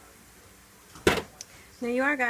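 A metal pot is set down on a stovetop with a clank.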